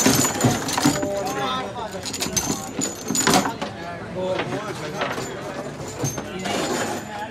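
Young men talk and shout nearby.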